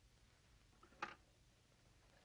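A telephone receiver clatters as it is picked up.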